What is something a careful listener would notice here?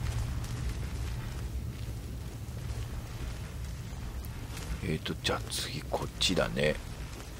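A magic spell hums low in both hands.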